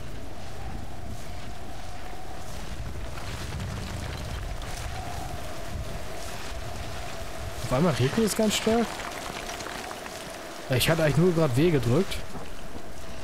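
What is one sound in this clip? Hands and boots scrape against rock during a climb.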